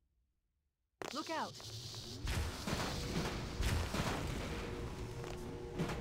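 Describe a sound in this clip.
Plasma weapon bolts crackle and hiss.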